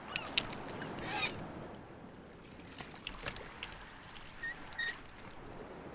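A wooden chest lid creaks and knocks open.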